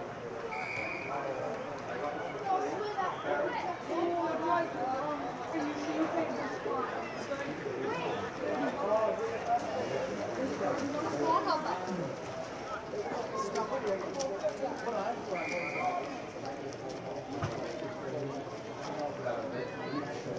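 Young players shout and call to each other on an open field.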